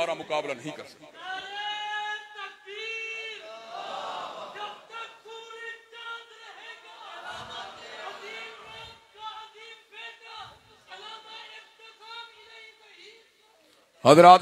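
A man chants softly in a drawn-out melodic voice through a microphone.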